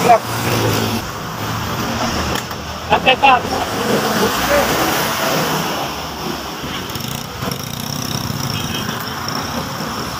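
A motor scooter engine idles nearby and then pulls away.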